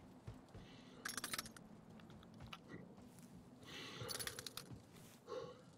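A gun's metal parts click and rattle as it is handled.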